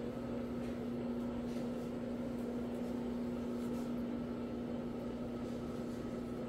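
A floor scrubbing machine hums steadily.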